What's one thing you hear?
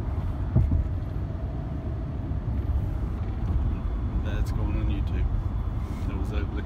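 A car engine hums low and steady from inside the cabin.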